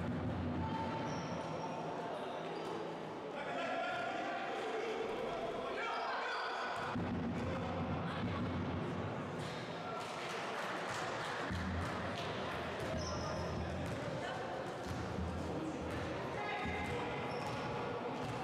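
A basketball bounces on the floor in an echoing hall.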